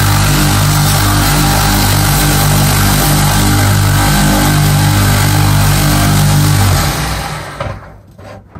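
A belt grinder roars loudly as it grinds metal.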